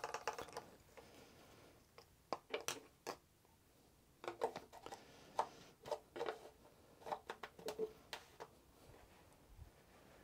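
A plastic cap and funnel click and knock as they are handled.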